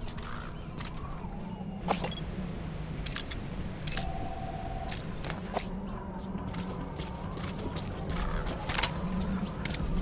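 Boots crunch on rocky ground as a soldier moves in a crouch.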